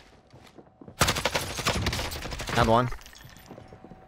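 Rapid gunfire rattles in a burst.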